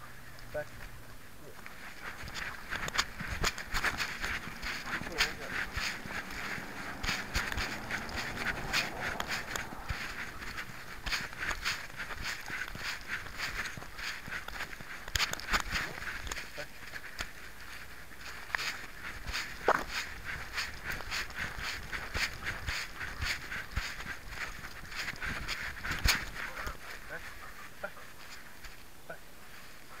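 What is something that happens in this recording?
An animal's paws patter and scuff on a path close by.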